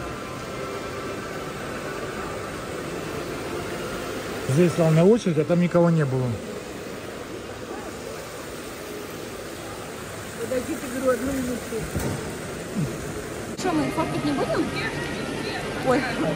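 A fountain splashes steadily.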